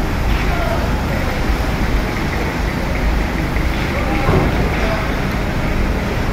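A truck engine idles with a low, steady rumble in a large echoing space.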